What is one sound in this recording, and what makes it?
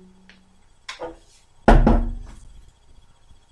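A cello body is bumped with a thump.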